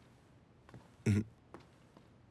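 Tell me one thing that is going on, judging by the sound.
A man says a short word.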